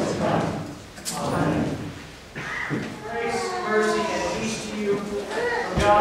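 A man chants in a slightly echoing room.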